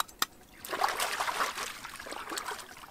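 Water splashes as a hand scoops in the shallows.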